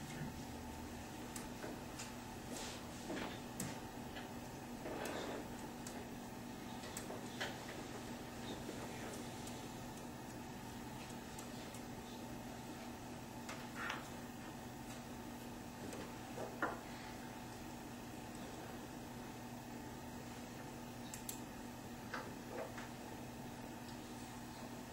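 Papers rustle softly.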